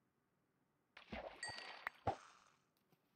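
A fishing bobber splashes in water as a catch is reeled in.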